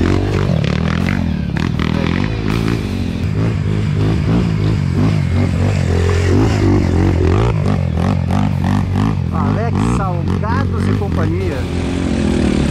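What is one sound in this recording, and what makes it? Dirt bike engines buzz and rev up a rough trail.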